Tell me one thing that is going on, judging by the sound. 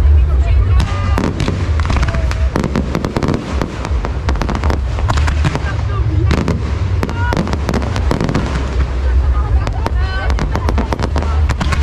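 Fireworks bang and crackle rapidly nearby.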